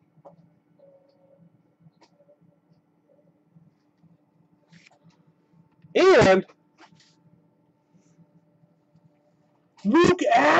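Trading cards rustle and tap softly as hands handle them.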